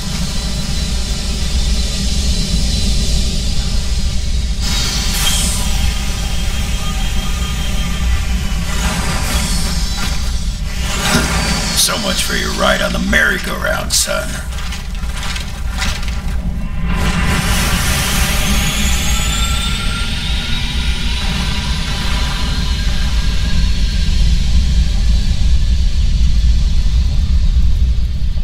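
Aircraft engines roar and whine overhead.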